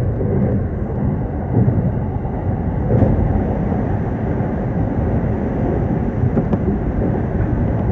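Another train rolls past close by on the next track.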